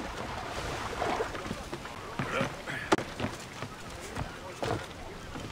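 Hands and feet knock against a wooden hull while climbing.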